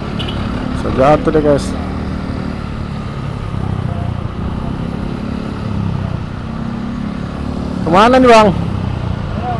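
Vehicle horns honk loudly a few times.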